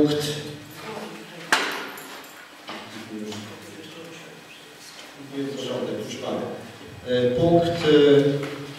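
A woman speaks calmly through a microphone in a room with some echo.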